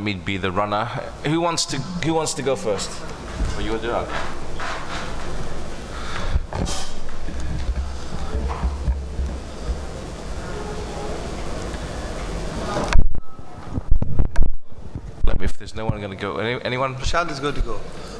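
A man speaks into a microphone with animation, heard through loudspeakers in a large room.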